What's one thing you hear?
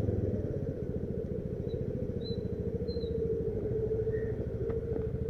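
A motorcycle engine putters steadily up close.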